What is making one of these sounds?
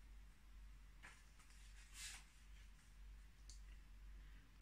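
Book pages rustle softly.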